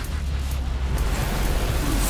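A sword whooshes through the air in quick slashes.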